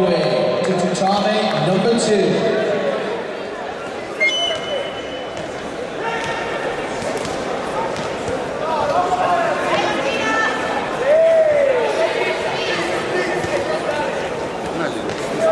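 A crowd of men and women shouts and cheers in a large echoing hall.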